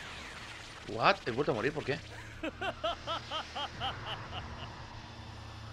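A man laughs loudly and menacingly.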